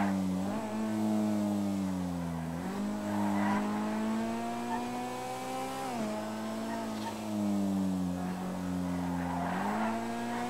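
A car engine roars at high revs, rising in pitch and dropping sharply with each gear change.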